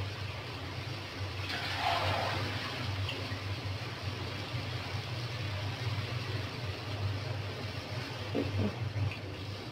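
A gas burner hisses with a low, steady roar.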